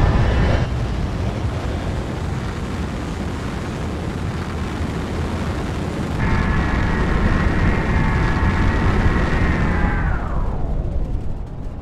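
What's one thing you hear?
Laser cannons fire with a loud, droning buzz.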